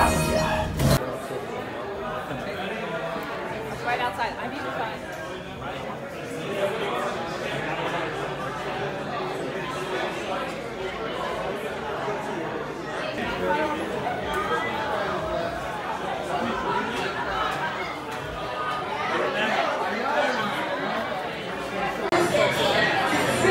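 A crowd of people chatters in a busy, echoing room.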